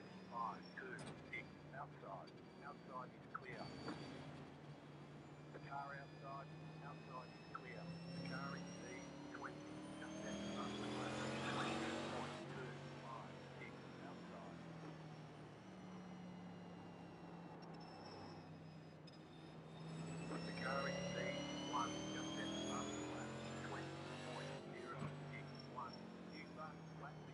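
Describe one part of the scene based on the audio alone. A race car engine drones steadily and rises in pitch as the car speeds up.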